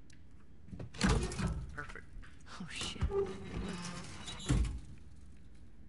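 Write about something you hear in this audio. A heavy metal safe door creaks and clanks open.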